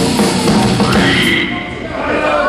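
A rock band plays loudly with distorted electric guitars and drums.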